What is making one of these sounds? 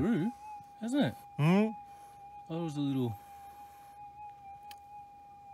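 A metal detector gives off a steady, high tone.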